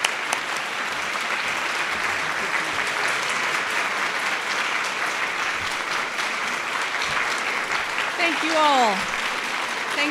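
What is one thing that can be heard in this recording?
A crowd applauds steadily in a large room.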